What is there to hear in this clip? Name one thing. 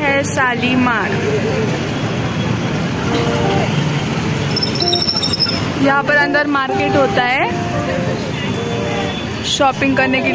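Motor scooters and auto-rickshaws hum and pass by.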